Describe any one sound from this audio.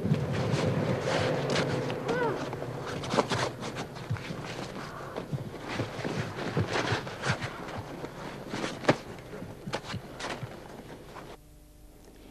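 Rubber protective suits rustle and flap as they are pulled on.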